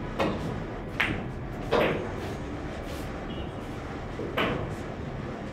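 Billiard balls clack against each other and thud into the cushions.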